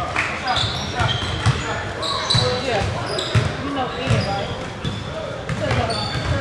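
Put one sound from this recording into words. A basketball bounces on a hard floor with dull thuds.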